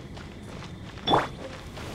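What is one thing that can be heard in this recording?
A magical burst whooshes and shimmers.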